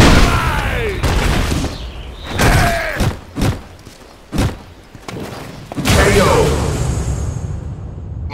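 Punches and kicks in a video game fight land with sharp, heavy thuds.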